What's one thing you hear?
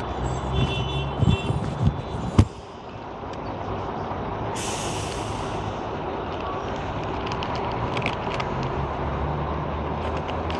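A bus engine rumbles close by.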